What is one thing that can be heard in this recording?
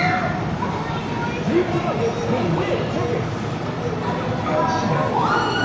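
Arcade game machines play loud electronic music and sound effects.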